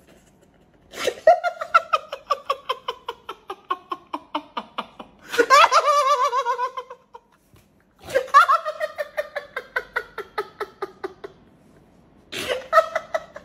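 A man sobs and cries loudly, gasping for breath.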